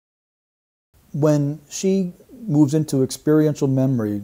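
A middle-aged man speaks calmly and close to a microphone.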